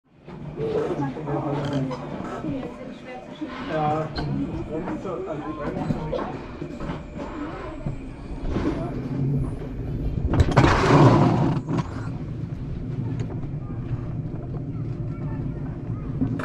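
A toboggan's wheels rumble and clatter along a metal track.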